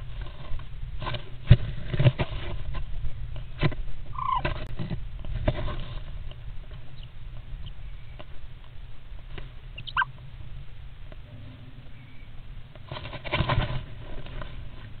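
Birds flutter their wings and scrabble on nest material close by.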